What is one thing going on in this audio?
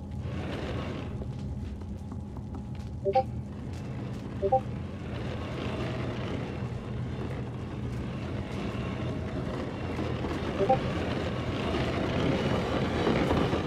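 A wooden crate scrapes and drags across creaking floorboards.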